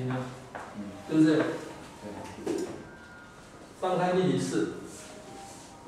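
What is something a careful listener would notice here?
A man speaks calmly in a room, as if lecturing.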